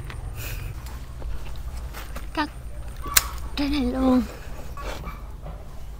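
Scissors snip through a stem.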